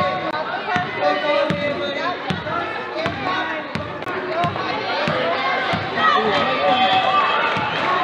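A basketball bounces on a wooden gym floor.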